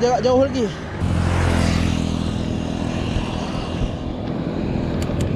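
Wind rumbles against the microphone while cycling.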